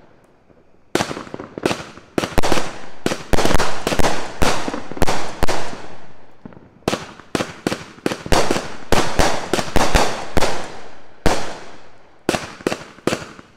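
Fireworks burst with loud, rapid bangs that echo outdoors.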